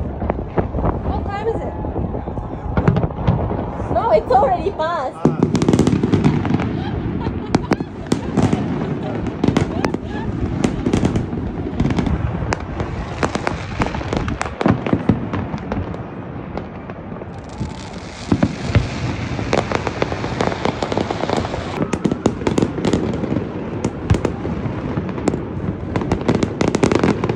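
Fireworks bang and crackle nearby, echoing between buildings.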